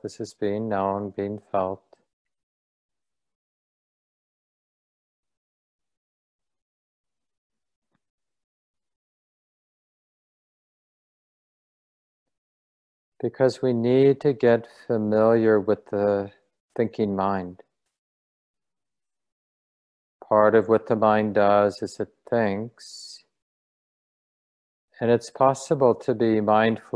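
A middle-aged man speaks calmly into a close microphone, heard as if through an online call, with long pauses.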